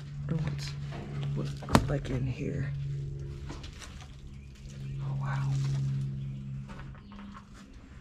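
Footsteps crunch on loose debris on a floor.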